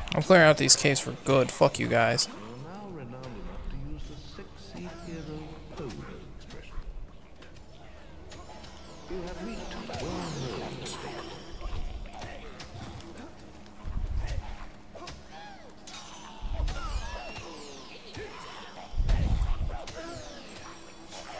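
Blades slash and strike creatures with heavy thuds in a fight.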